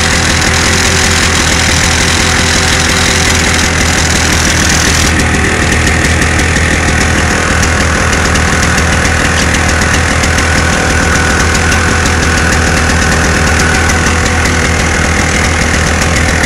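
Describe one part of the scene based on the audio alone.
A small engine runs loudly with a steady rattling hum.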